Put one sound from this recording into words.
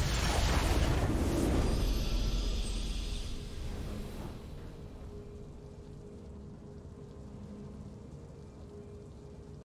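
A triumphant game fanfare swells.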